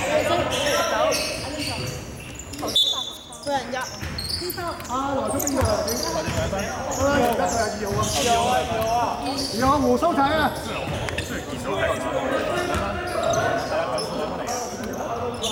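Young men and women talk and call out across the hall.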